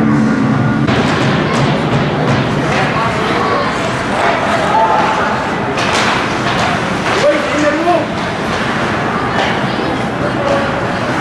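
Spectators murmur and call out in a large echoing arena.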